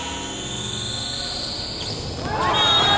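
A volleyball is struck hard with a loud smack.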